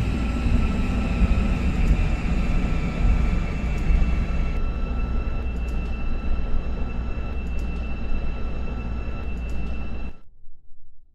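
A train rumbles and hums steadily as it runs along the tracks.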